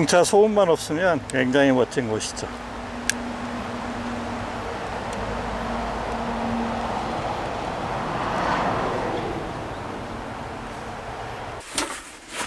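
Leaves rustle softly in a light breeze outdoors.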